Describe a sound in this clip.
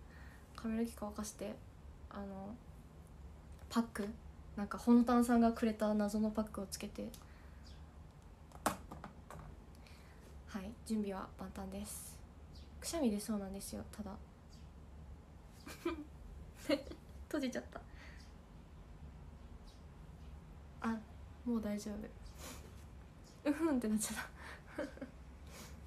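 A young woman talks casually and close to a microphone, in short bursts with pauses.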